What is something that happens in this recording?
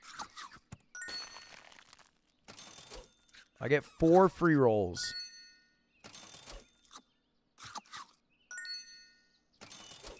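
Short electronic chimes ring out now and then.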